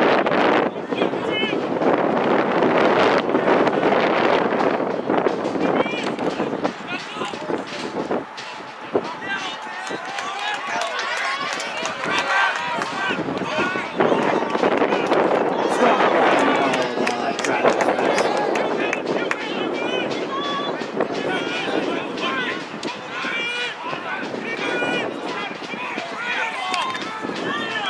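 Young men shout to each other in the distance outdoors.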